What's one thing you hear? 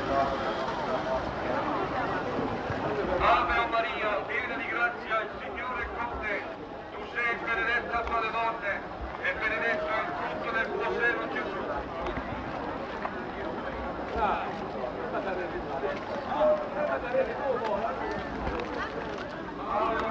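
A brass band plays a march outdoors.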